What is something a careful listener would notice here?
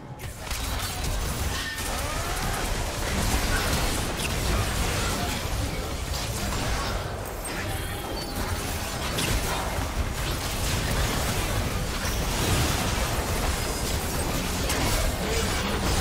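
Video game spells crackle and blast during a fight.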